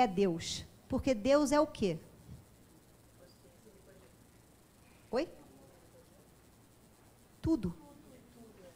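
A woman speaks with animation through a microphone, pausing now and then.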